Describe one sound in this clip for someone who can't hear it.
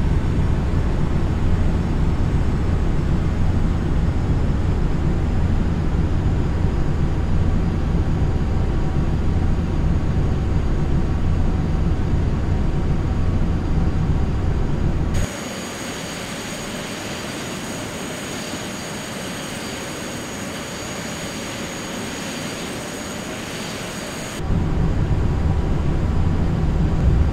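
A jet engine rumbles low and steady, heard from inside the plane.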